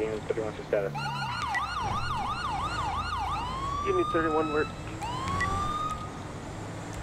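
A police siren wails and yelps.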